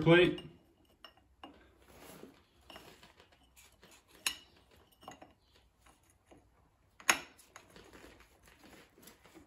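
Metal parts clink and scrape against each other.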